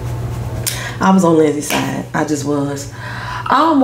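A woman speaks calmly and close to the microphone.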